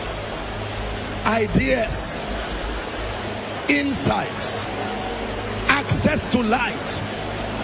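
A large crowd murmurs and prays aloud in a large echoing hall.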